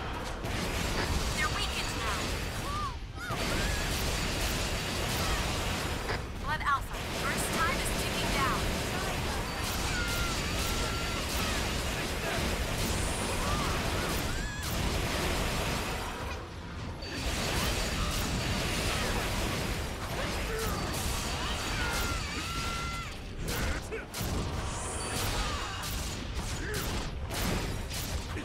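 Blades slash and strike heavily in a fast fight.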